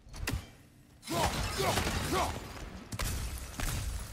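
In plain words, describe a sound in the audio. Metal blades strike and smash clay pots.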